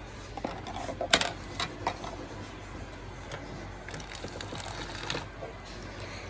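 Water pours from a dispenser into a plastic cup.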